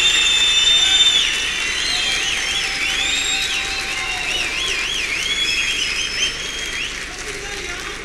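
A man whistles warbling bird-like trills through a microphone in a large hall.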